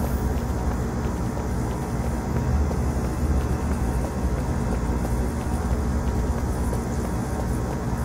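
Footsteps run quickly across a metal floor.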